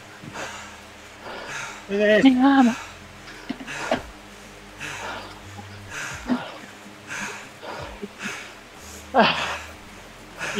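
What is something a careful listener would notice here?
A man breathes hard and rhythmically close to a microphone.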